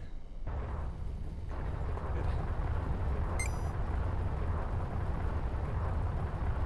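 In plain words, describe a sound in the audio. A spaceship engine rumbles with a deep, steady roar.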